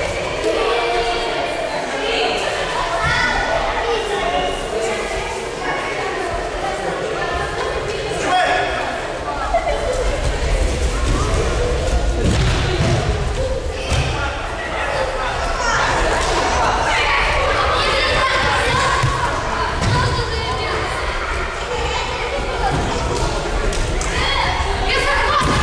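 Children and adults chatter in a large echoing hall.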